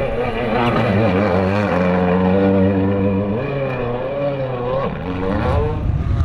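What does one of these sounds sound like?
A rally car engine roars loudly, revving up and down as the car accelerates away.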